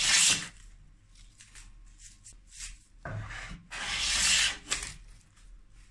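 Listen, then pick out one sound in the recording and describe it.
A hand plane shaves wood with a rasping hiss.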